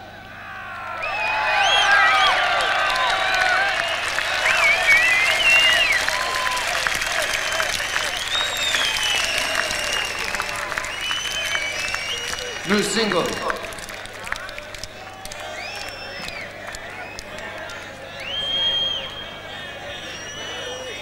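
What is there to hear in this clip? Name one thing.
A large crowd cheers loudly in a big hall.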